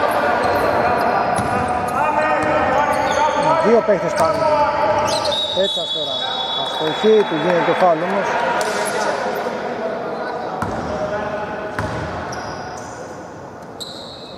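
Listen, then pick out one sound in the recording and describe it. Young men call out to each other in an echoing hall.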